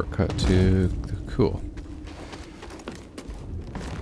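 Footsteps run over wooden planks.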